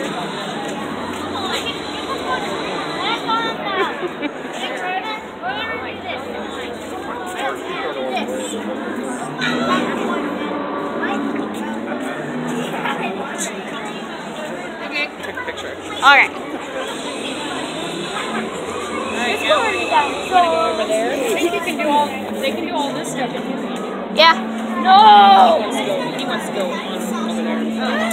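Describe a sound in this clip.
A crowd murmurs throughout in a large echoing hall.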